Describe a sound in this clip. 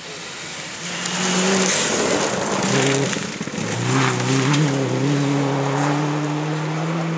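Gravel sprays and rattles under spinning tyres.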